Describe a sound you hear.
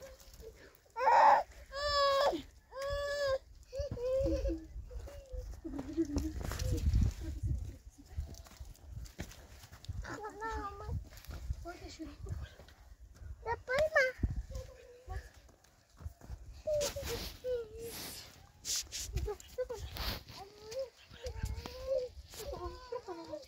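A young girl speaks and calls out nearby.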